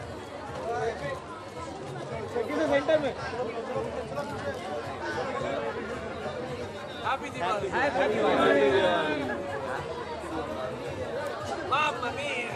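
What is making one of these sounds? Several people chatter and call out nearby in a lively crowd.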